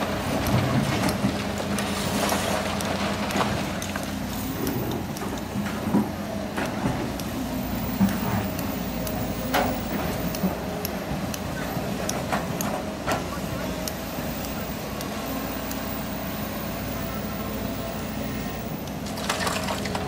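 Rocks clatter and thud as an excavator digs.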